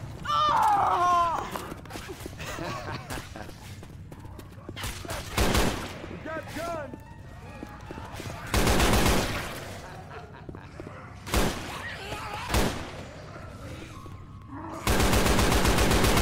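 A rifle fires loud, rapid bursts of shots.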